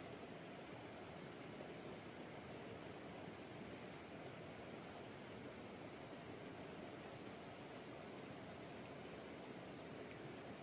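A shallow stream rushes steadily over rocks nearby.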